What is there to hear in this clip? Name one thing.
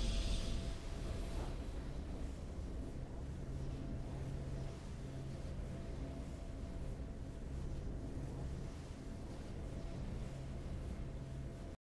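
Triumphant music plays softly.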